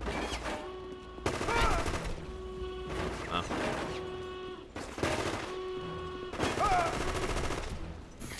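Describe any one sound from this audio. A submachine gun fires rapid bursts close by.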